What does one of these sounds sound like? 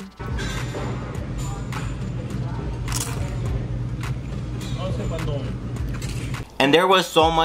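A man bites into and chews crunchy food close by.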